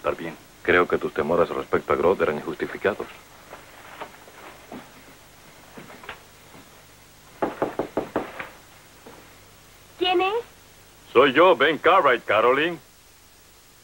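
A man speaks in a low, earnest voice close by.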